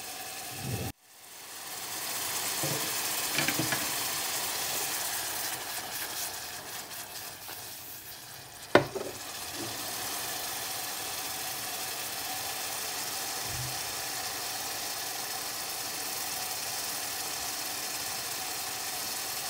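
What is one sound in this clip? Onions sizzle and crackle steadily in a hot pan.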